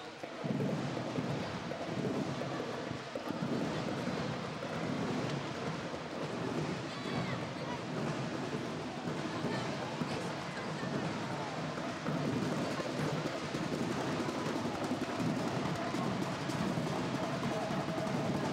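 A drill team stomps and claps in rhythm on a hard floor.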